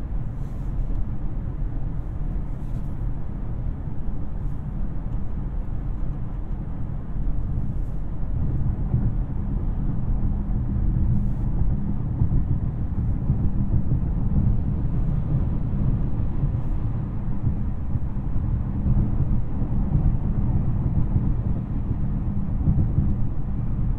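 Tyres roar on asphalt, heard from inside a car's cabin.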